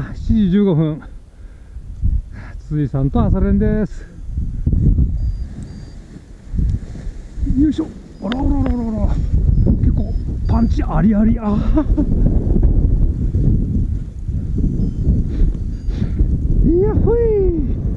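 Wind blows hard and roars across the microphone outdoors.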